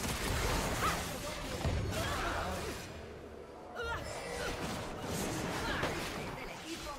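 Magic spells zap and crash in a busy fantasy battle.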